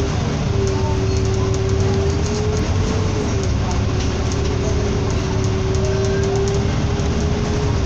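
Traffic hums on a road under an overpass.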